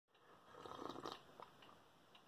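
A woman sips a drink noisily.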